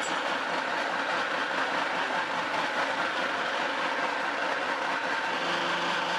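A plastic tub scrapes on a concrete floor.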